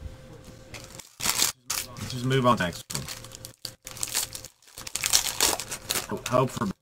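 A foil pack crinkles and tears as it is opened.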